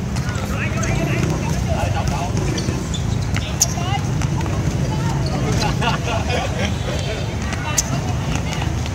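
Young men shout and call out across an outdoor court.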